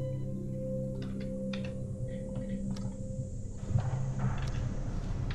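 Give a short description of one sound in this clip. Short electronic clicks sound from a game.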